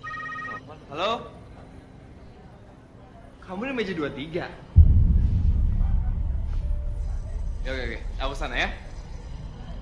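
A young man talks on a phone.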